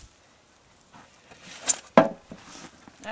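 A shovel scrapes and thuds against a metal wheelbarrow.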